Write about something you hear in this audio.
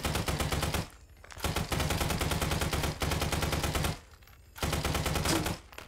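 A machine gun fires in rapid bursts close by.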